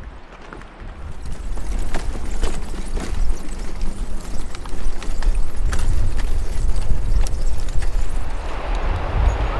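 Bicycle tyres rumble and clatter over wooden planks.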